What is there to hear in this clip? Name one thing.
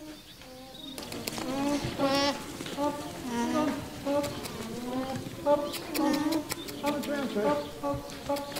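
Alpacas hum softly nearby.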